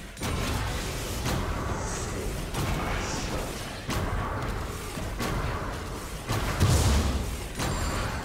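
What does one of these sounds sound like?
Bursts of fire whoosh and crackle.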